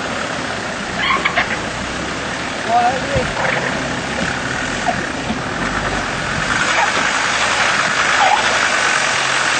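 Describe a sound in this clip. A man shouts directions nearby, outdoors.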